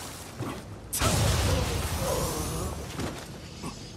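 A sword strikes with a burst of sparkling chimes.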